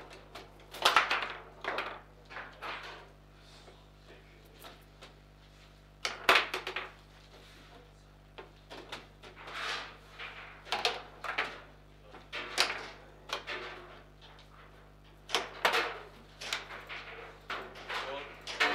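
Table football rods clack and rattle as they are spun and slid.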